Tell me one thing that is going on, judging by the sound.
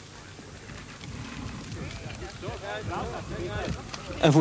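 People talk quietly in the distance outdoors.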